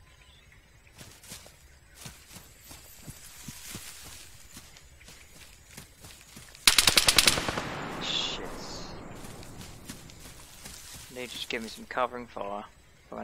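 Footsteps crunch through dry leaves and undergrowth.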